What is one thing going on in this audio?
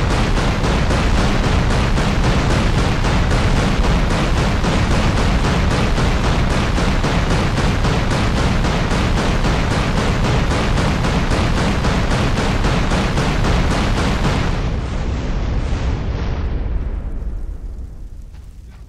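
Explosions boom and roar in rapid succession, then fade away.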